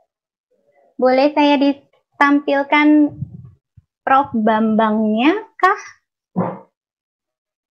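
A young woman speaks with animation, heard through an online call.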